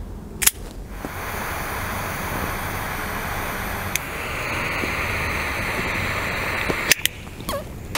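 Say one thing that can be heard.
A torch lighter roars with a steady hiss.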